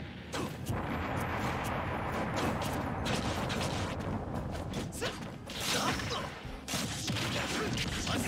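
Game fighters strike each other with sharp hit sounds.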